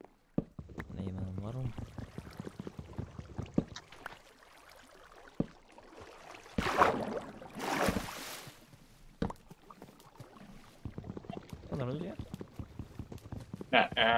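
Wooden blocks knock and crack as they are broken.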